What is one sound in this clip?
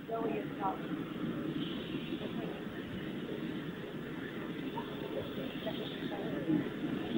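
Several men talk in low voices nearby, outdoors.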